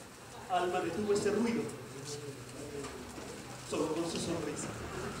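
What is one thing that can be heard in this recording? A young man speaks with animation, slightly distant.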